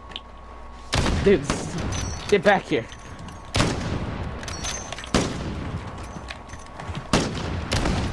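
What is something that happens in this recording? A rifle fires loud, echoing shots.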